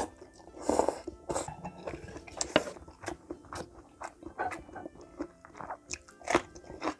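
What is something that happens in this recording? A woman chews and slurps food wetly, close to the microphone.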